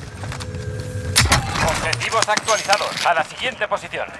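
A metal supply crate clanks open.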